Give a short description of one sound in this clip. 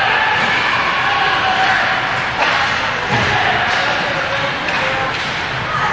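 A crowd of spectators cheers and chatters in a large echoing rink.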